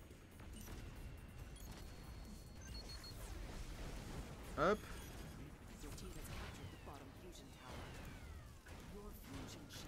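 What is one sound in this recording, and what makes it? Laser weapons fire with sharp zaps.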